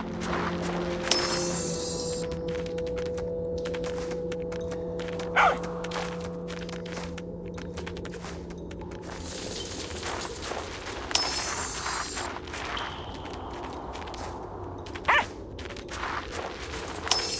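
A soft burst sounds as a cloud of dust puffs up.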